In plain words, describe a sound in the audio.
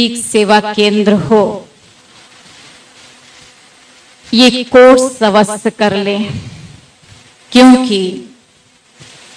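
A woman speaks into a microphone in slow, drawn-out phrases, heard through a loudspeaker.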